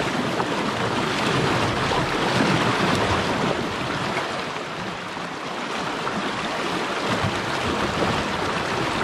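Water splashes around a wading person's legs.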